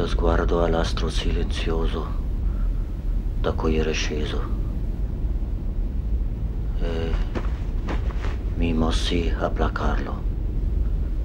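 A man speaks slowly and calmly, close by.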